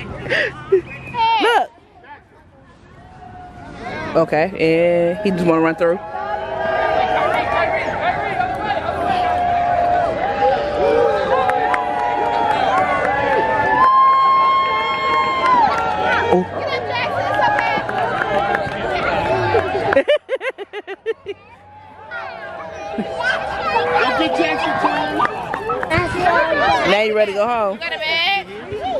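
Young children squeal and laugh excitedly.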